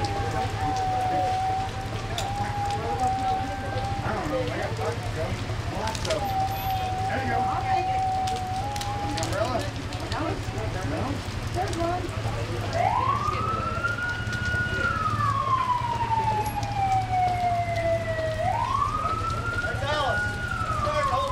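Rain falls steadily on wet pavement outdoors.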